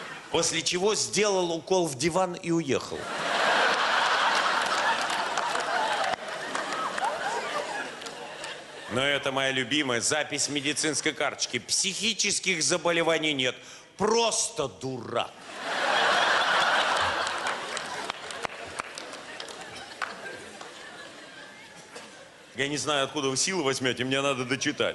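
A middle-aged man reads out aloud and with expression through a microphone in a large hall.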